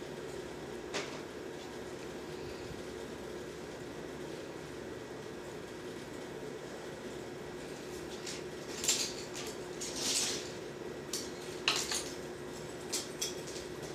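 A metal spoon scrapes and taps against a plate.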